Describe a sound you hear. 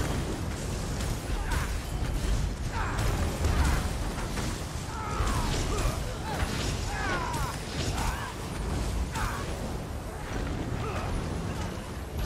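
Weapons clash and strike with sharp hits.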